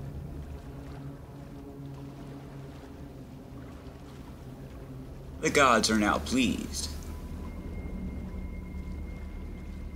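A man wades and splashes through deep water.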